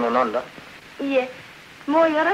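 A young woman speaks cheerfully.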